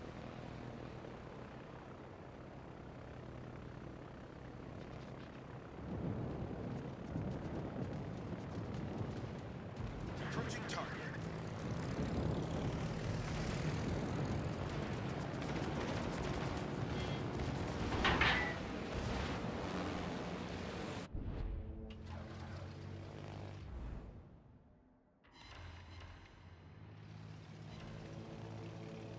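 Propeller plane engines drone steadily.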